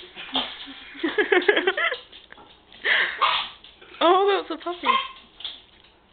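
A dog yelps and whines in high, wavering cries.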